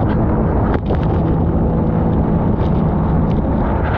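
Water sprays and splashes against the hull.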